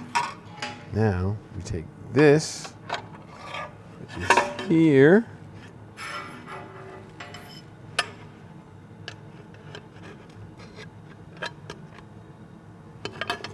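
A metal tool scrapes and clinks against a metal pan.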